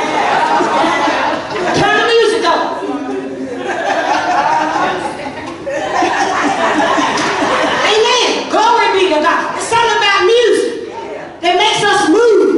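A woman preaches with passion through a microphone, her voice ringing out over loudspeakers in a large echoing hall.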